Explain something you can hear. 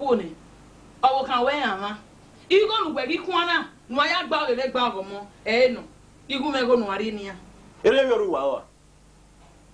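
A woman speaks loudly and with animation close by.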